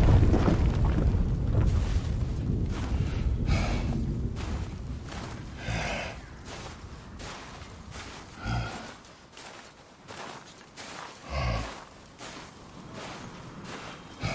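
Heavy footsteps crunch slowly through snow.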